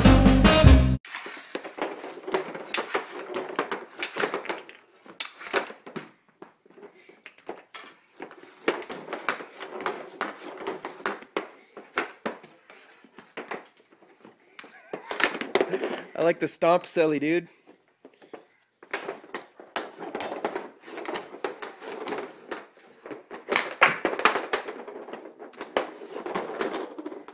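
A hockey stick knocks pucks across a hard floor.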